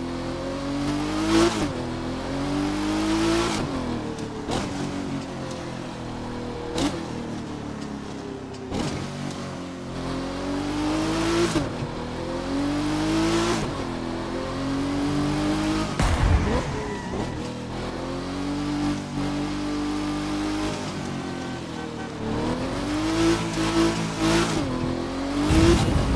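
A sports car engine revs up and down through the gears.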